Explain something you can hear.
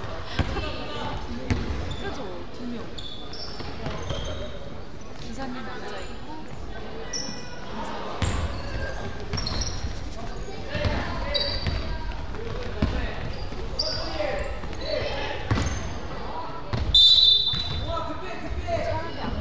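Players' footsteps pound across the court in a large echoing hall.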